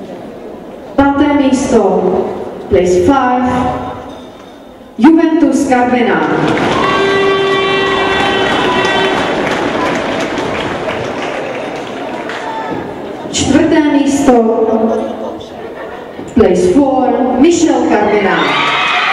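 A man announces over a loudspeaker in a large echoing hall.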